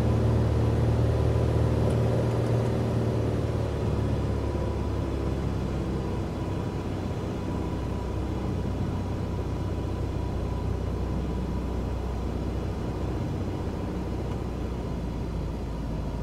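A small propeller plane's engine drones steadily from inside the cabin, growing a little quieter.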